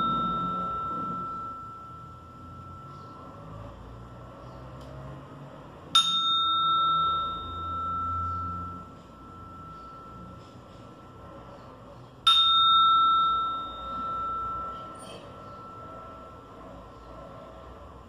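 A small metal chime is struck and rings out clearly, slowly fading away.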